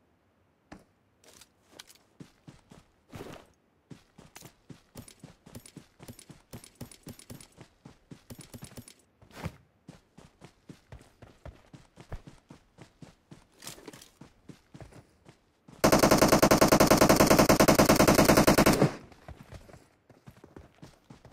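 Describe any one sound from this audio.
Footsteps rustle through grass in a quick, steady rhythm.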